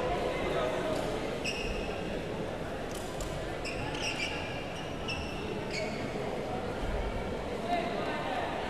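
A crowd murmurs and chatters in an echoing indoor hall.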